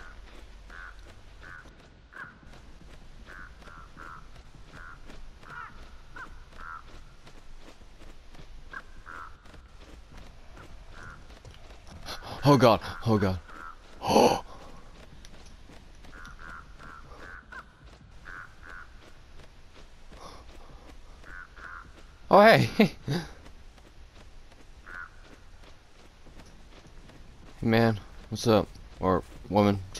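Footsteps run quickly over grass and pavement.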